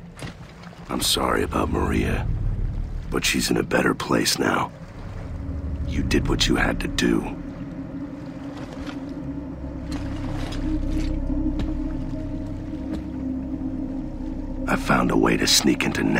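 A man speaks in a deep, gruff voice close by.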